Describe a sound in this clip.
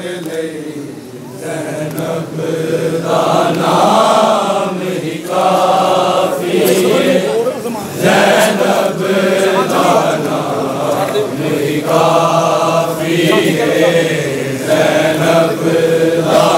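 A large crowd of men chants loudly in unison, outdoors.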